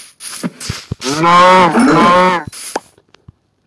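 A cow moos in pain.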